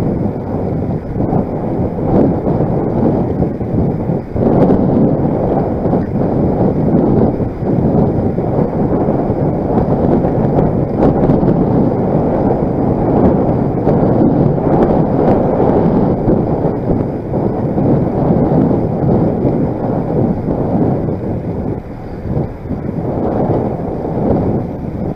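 Wind buffets the microphone with a loud, steady roar.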